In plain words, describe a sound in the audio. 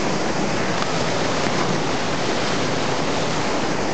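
A boy splashes into the water.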